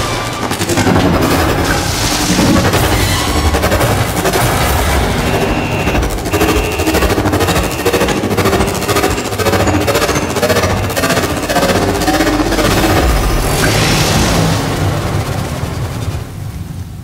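Electric arcs crackle and buzz loudly.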